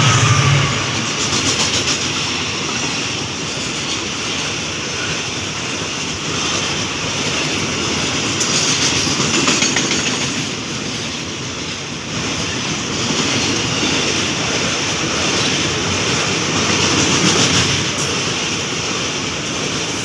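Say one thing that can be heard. Steel wheels clatter rhythmically over rail joints.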